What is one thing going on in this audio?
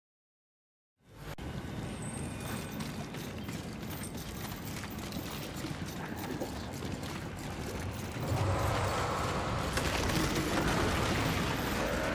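Footsteps run quickly over a hard stone floor.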